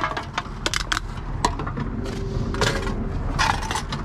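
Plastic bottles crinkle and clatter in a wire basket.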